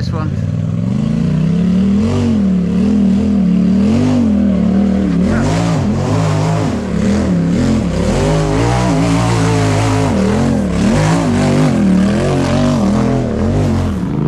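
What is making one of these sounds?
An off-road vehicle's engine revs hard, rising and falling in pitch.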